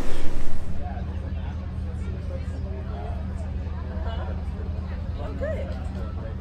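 A crowd of people chatters softly in the distance outdoors.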